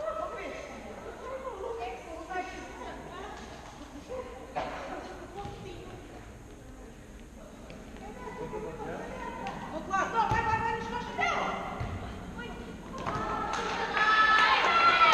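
A ball is kicked and thuds on a hard floor.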